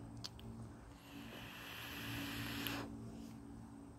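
A man draws a long breath through a vape, with a soft hiss.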